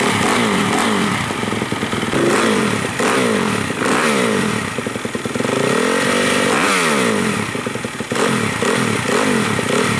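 A dirt bike engine revs up and down in quick bursts.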